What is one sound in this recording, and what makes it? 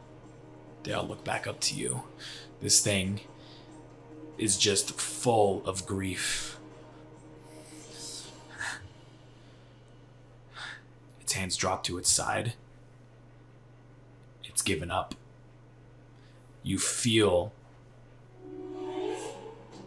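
A young person speaks in reply.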